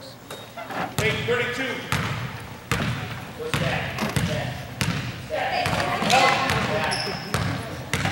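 A basketball bounces on a hard court, echoing in a large hall.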